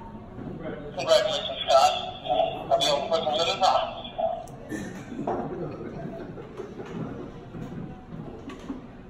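A middle-aged man talks nearby.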